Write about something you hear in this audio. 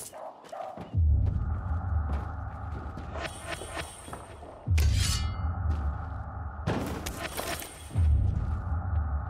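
Footsteps land with heavy thuds after jumps from a height.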